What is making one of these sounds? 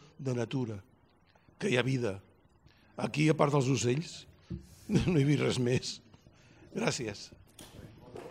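An elderly man speaks into a microphone in short, animated bursts.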